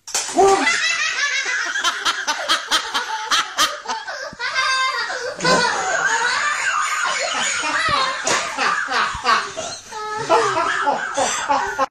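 A young boy laughs and shrieks with excitement close by.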